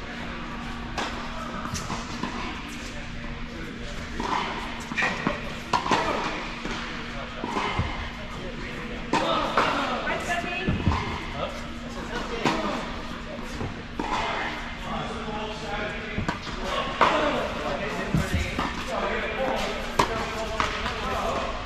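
Tennis balls pop off rackets in a large echoing indoor hall.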